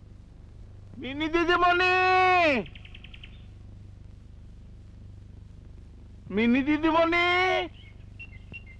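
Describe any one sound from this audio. A middle-aged man calls out loudly in long, drawn-out cries.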